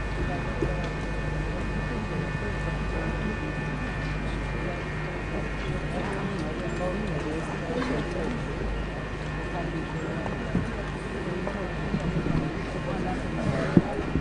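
A man speaks calmly through a microphone and loudspeakers.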